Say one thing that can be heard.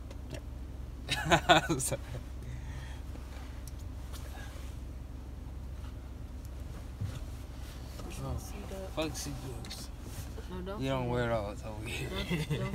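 A young man laughs and talks close by.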